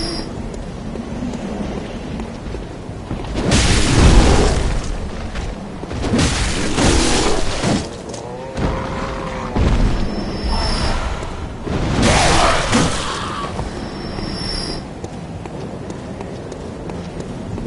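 Footsteps run on cobblestones.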